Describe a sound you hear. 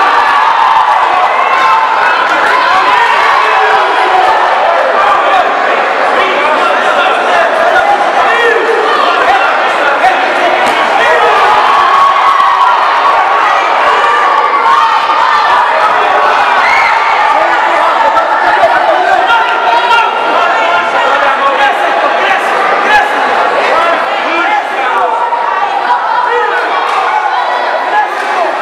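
A crowd of spectators shouts and cheers around a boxing ring.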